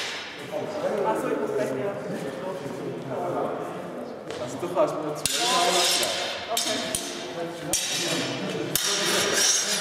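Steel practice swords clash with sharp clicks in a large echoing hall.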